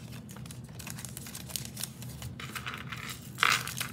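Paper rustles as a small card is handled.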